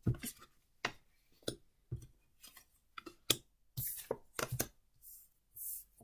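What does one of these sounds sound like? Cards are laid down softly on a table.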